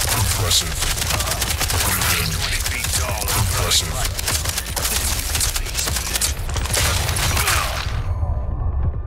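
Rapid gunshots fire loudly.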